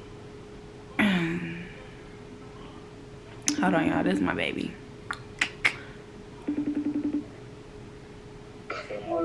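A young woman talks casually, close by.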